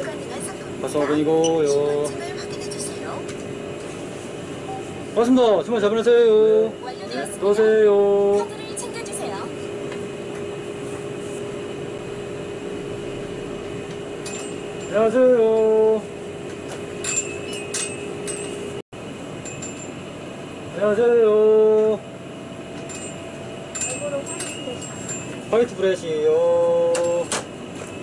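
A young man speaks close by in short, calm phrases.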